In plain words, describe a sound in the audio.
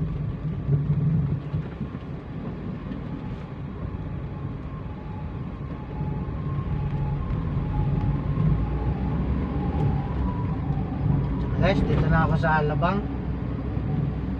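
Tyres roll over pavement.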